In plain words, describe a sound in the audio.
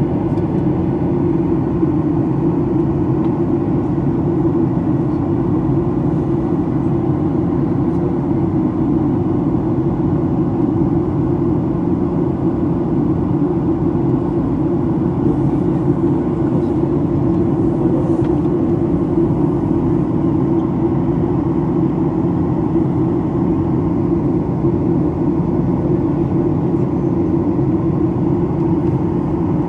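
A jet engine roars steadily from inside an airplane cabin.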